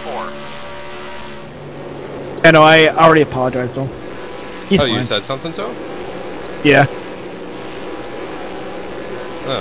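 A stock car V8 engine drones at full throttle in a racing game.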